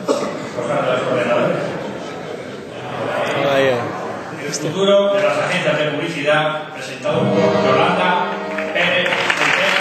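A man speaks into a microphone over loudspeakers in a large hall.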